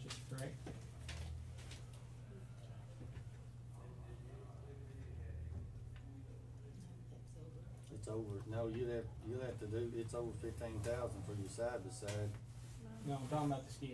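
A man speaks calmly to a small group.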